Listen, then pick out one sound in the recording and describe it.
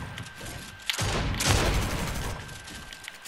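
Wood and glass break apart with a crash.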